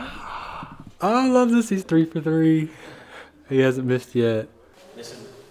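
A young man laughs and talks with animation close by.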